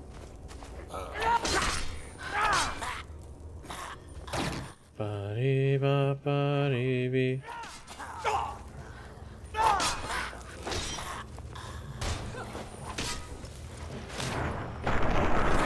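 Weapons strike and clash in a fight.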